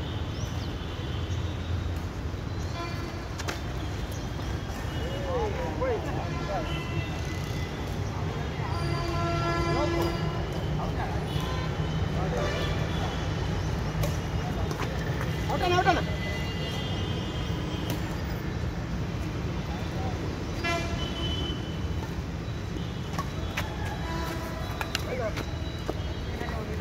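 Men call out to each other outdoors.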